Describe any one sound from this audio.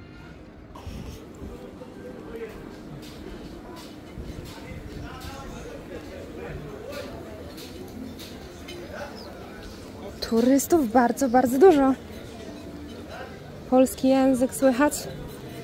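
Men and women chat quietly at tables nearby.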